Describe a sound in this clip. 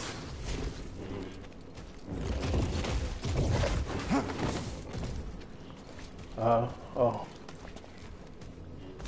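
Lightsabers hum and swoosh as they swing.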